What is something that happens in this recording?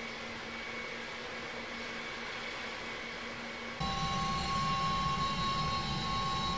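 A jet engine whines steadily at idle, growing louder with a deep rumble.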